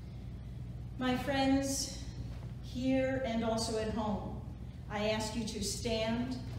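A woman speaks calmly and clearly in an echoing room.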